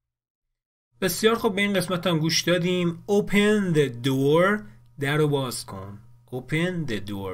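A young man speaks calmly and clearly, close to a microphone.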